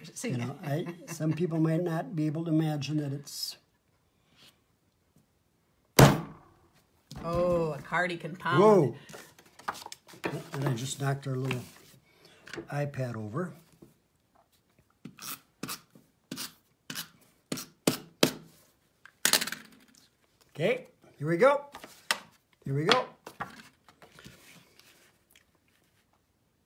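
Paper cards rustle and tap as they are handled.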